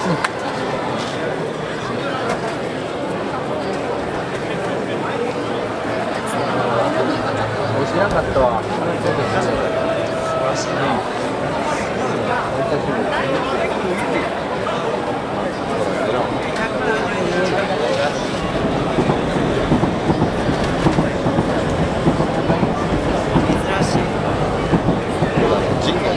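A large outdoor crowd chatters and calls out.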